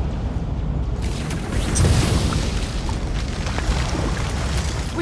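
An energy barrier crackles and hisses loudly.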